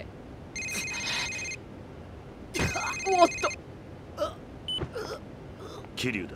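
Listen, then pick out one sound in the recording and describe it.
A man speaks roughly and close by.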